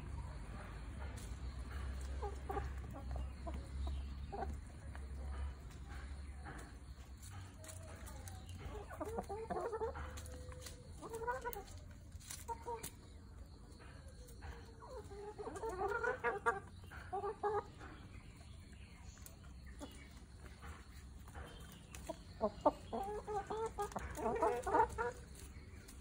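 Hens cluck and squawk close by.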